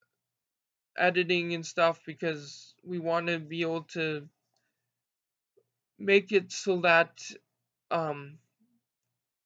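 A young man speaks calmly and close to the microphone, in short bursts with pauses.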